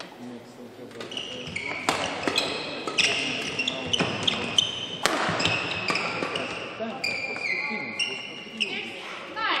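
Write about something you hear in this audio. Shoes squeak sharply on a sports court floor.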